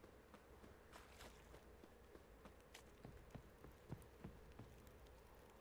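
Footsteps thud on wooden stairs and planks.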